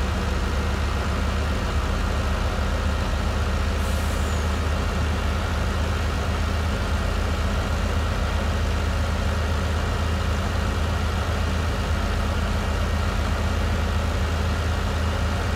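A truck engine drones steadily at a low pitch as the truck drives along.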